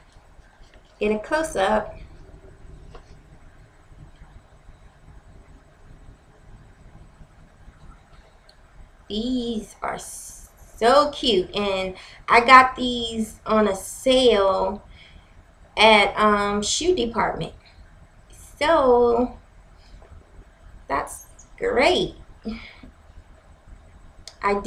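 A young woman talks calmly and close to the microphone, in short bursts with pauses.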